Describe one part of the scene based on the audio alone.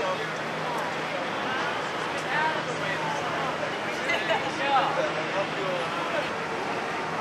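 A man talks animatedly with an elderly woman nearby.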